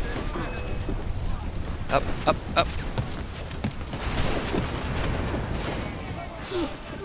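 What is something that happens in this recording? Wind and sea roar in a storm.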